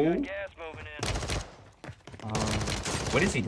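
A pistol fires several rapid shots indoors.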